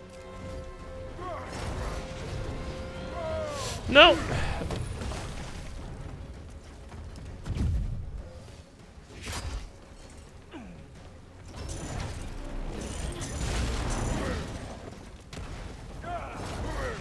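Punches and blows land in a fight.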